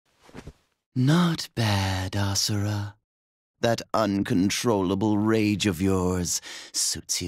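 A man speaks calmly and mockingly.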